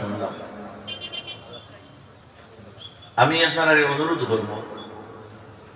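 An elderly man preaches loudly through a microphone and loudspeaker.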